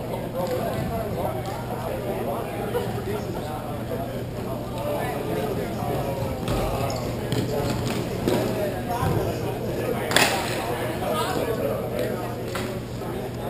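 Skates scrape and roll across the rink floor.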